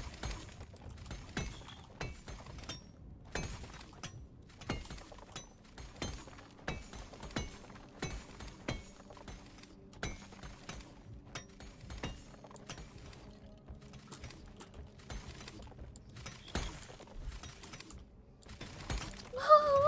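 Pickaxe blows crack against rock and crystal in quick, repeated hits.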